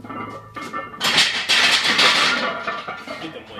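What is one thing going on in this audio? A young man grunts loudly with strain.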